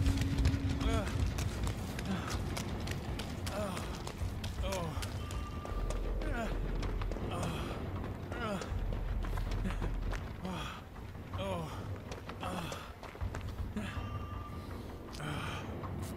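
Footsteps crunch quickly over the ground.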